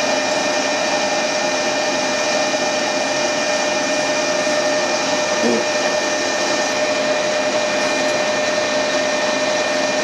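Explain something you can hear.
A metal lathe hums and whines steadily.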